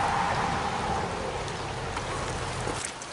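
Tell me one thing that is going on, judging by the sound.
A stream trickles gently.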